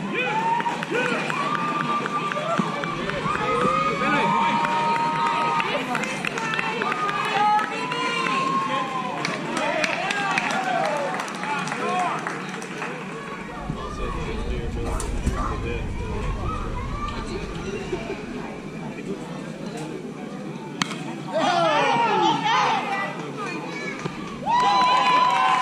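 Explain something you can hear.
Young children shout and cheer from across an open field.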